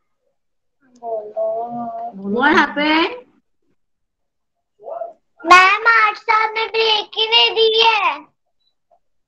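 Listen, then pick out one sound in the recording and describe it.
A young girl speaks over an online call.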